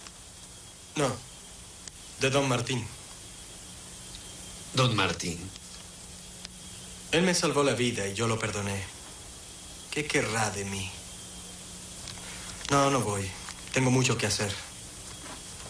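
A man speaks slowly and gravely in short phrases, reading out.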